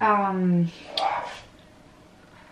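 A woman slurps a hot drink from a mug.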